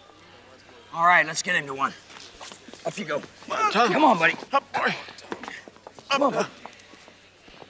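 Men speak urgently and with alarm, close by.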